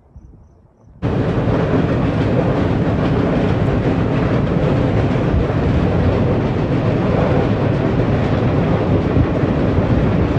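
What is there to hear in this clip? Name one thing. A freight train rumbles loudly and steadily across a steel bridge overhead.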